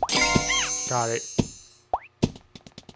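A bright game chime jingles as a star is collected.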